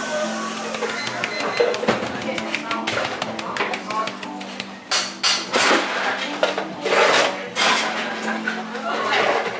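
A shaker is tapped rapidly over a plate.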